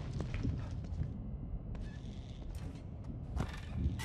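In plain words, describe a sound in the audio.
A wheelchair creaks as a man sits down in it.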